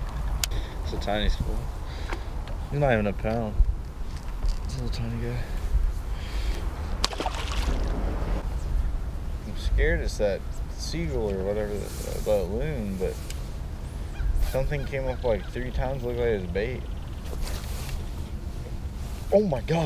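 A man talks with animation close by, outdoors in wind.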